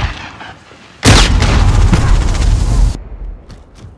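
An explosion booms with a heavy rumble.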